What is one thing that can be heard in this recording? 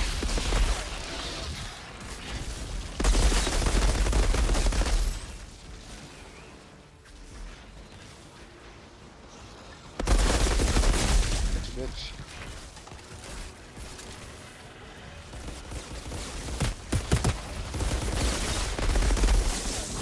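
Gunfire and explosions from a video game boom in loud bursts.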